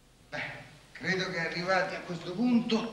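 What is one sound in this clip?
A man reads aloud in a steady voice, close by.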